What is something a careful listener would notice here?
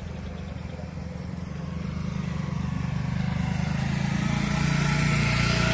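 A motorcycle engine hums as it approaches along the road.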